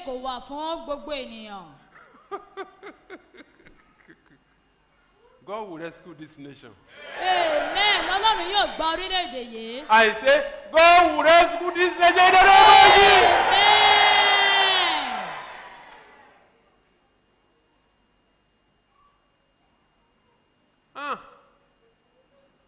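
A man speaks and calls out with animation through a microphone in a large echoing hall.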